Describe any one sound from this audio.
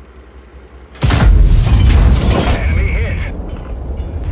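A tank cannon fires with a loud boom that echoes away.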